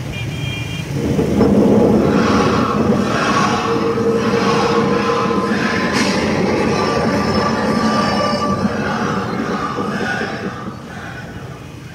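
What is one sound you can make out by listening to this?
A large crowd of men chants and shouts loudly.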